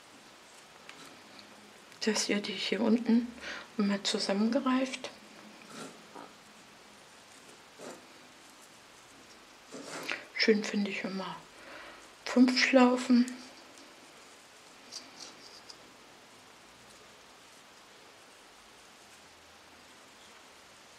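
Stiff mesh ribbon rustles and crinkles softly as fingers fold it.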